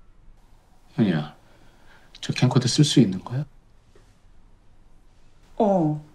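A young woman speaks in short phrases close by.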